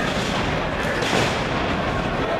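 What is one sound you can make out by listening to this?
A wrestler slams down onto a ring mat with a thud.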